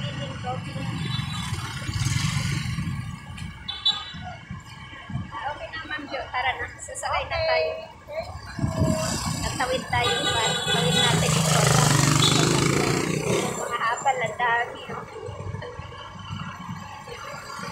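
Street traffic rumbles outdoors.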